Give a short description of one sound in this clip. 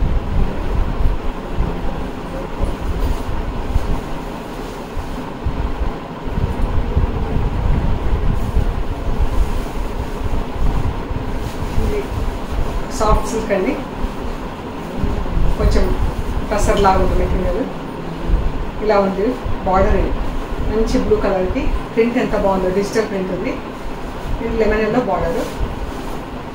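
Silk fabric rustles as it is unfolded and spread out.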